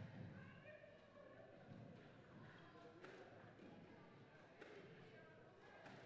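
Mops swish across a hard floor in a large echoing hall.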